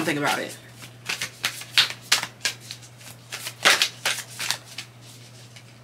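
Stiff paper rustles and taps as a card is handled.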